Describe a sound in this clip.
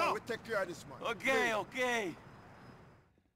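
A man shouts in agreement.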